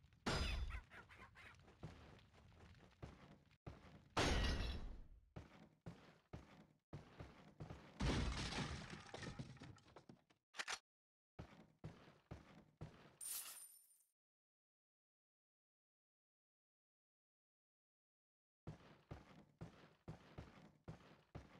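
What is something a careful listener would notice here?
Footsteps thud slowly across a creaking wooden floor.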